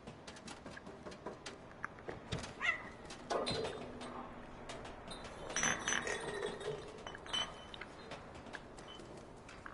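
Light paws patter across a corrugated metal roof.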